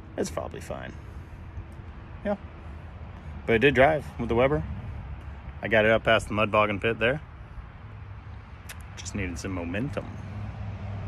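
A young man talks calmly and close up, in short bursts.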